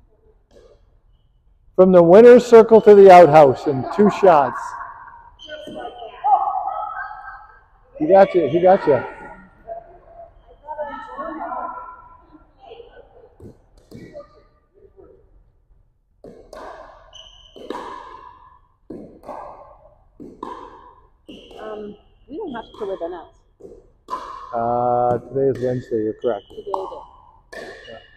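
Paddles pop a plastic ball back and forth in a large echoing hall.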